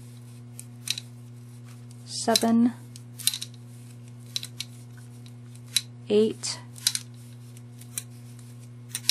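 Fingers tap and click against a glass jar.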